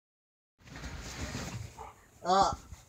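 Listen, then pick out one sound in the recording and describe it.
Bedding rustles as someone shifts on it.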